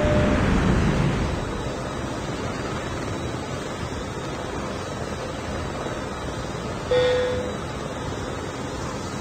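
Helicopter rotors thrum steadily.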